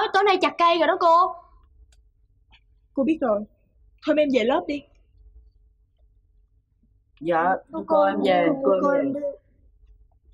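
A woman speaks firmly nearby.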